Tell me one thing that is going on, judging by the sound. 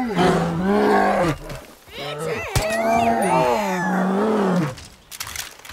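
A bear roars and growls loudly up close.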